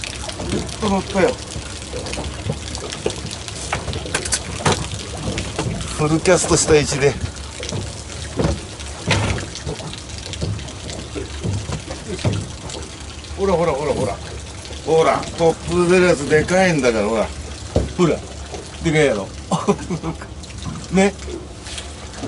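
A man talks excitedly close by.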